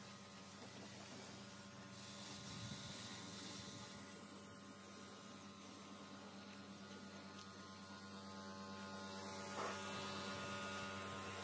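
A pressure washer sprays water in a steady, hissing jet.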